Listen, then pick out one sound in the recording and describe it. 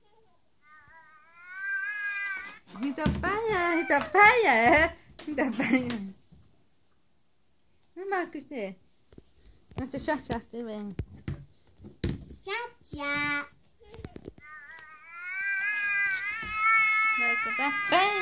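A toy doll babbles and giggles in a high, childlike voice.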